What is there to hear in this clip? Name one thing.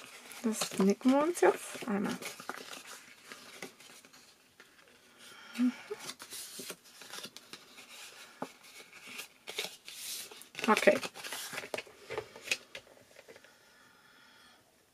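Stiff paper rustles as it is folded and creased by hand.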